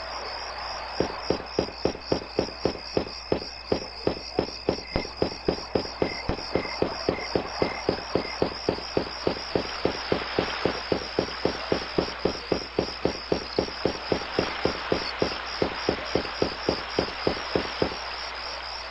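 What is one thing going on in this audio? Quick footsteps tap steadily on a stone pavement.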